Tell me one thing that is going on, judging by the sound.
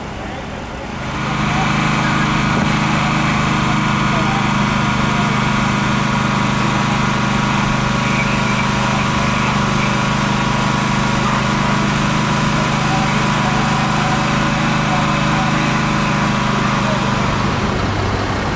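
A diesel fire engine idles.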